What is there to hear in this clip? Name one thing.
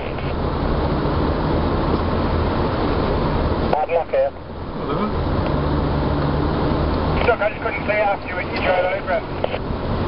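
A car engine rumbles steadily, heard from inside the car.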